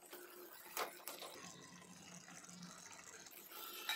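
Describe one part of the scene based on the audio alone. Soft cubes drop with a plop into a bubbling sauce.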